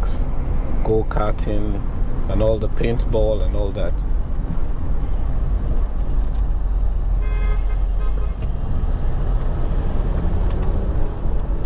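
A car engine hums steadily while driving along a city street.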